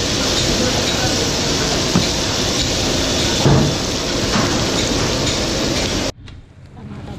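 Onions sizzle steadily in a hot pot.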